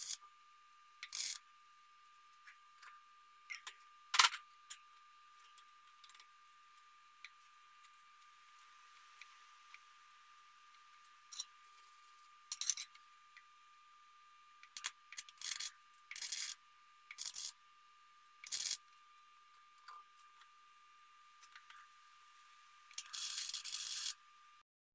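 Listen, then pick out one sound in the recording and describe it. A welder crackles and sizzles in short bursts.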